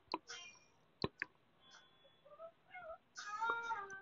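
A small plastic case lid snaps shut with a click.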